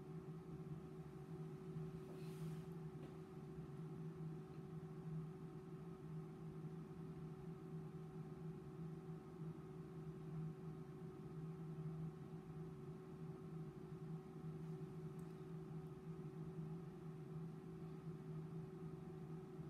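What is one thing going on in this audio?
A testing machine hums steadily.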